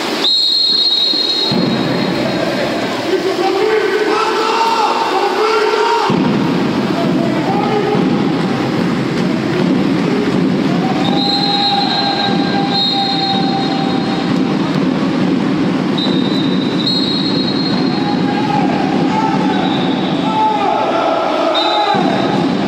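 Swimmers splash and churn the water in an echoing indoor pool.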